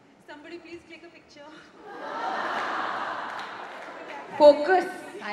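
A young woman speaks into a microphone in a large hall.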